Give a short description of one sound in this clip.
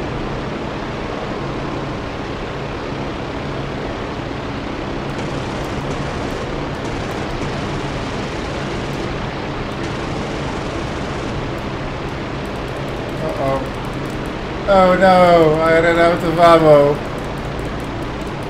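A propeller plane's engine drones steadily.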